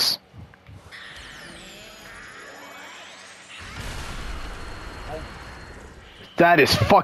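A crackling energy blast whooshes and roars.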